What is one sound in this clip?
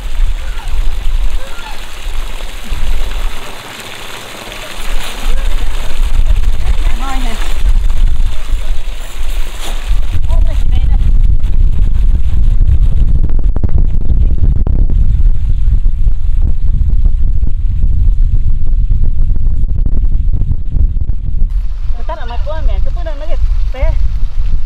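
Water pours from a pipe and splashes into a pond.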